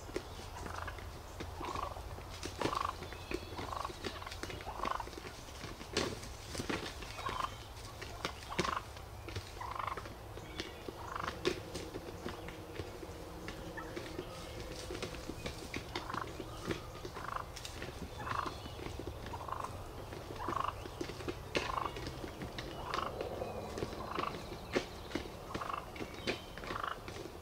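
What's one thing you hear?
Several wild turkeys gobble and call repeatedly nearby.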